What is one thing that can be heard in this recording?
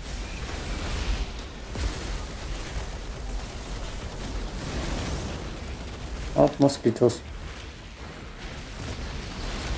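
Heavy gunfire and explosions rumble and crackle.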